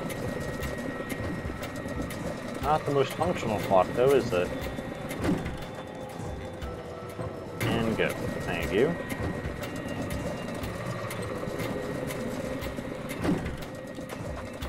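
Clockwork gears click and whir as a large clock hand turns.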